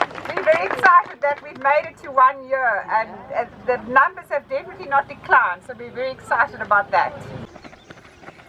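A woman speaks through a megaphone, reading out with animation.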